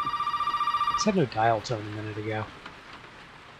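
A telephone receiver is lifted with a clatter.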